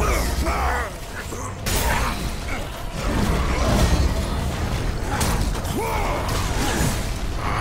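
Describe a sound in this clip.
Skeleton warriors clatter and crumble as they are hit.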